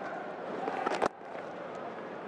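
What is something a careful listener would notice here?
A cricket bat hits a ball with a sharp crack.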